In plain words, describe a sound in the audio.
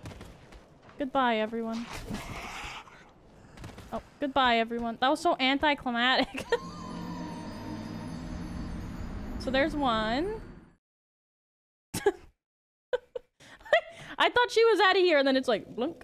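A young woman talks and exclaims with animation into a close microphone.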